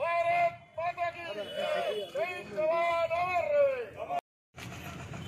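A group of men chant slogans loudly outdoors.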